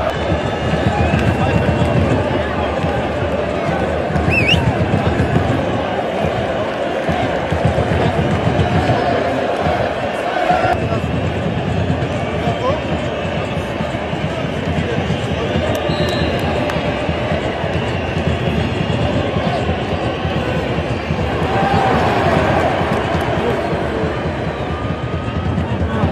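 A large stadium crowd roars and chants loudly throughout.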